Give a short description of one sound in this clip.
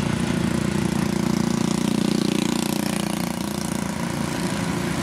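A motorbike passes close by with a buzzing engine.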